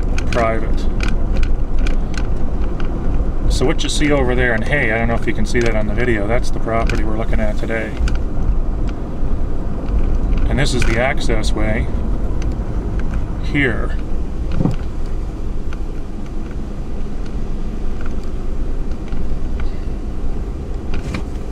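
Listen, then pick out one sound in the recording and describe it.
A car engine rumbles low and steady while driving slowly.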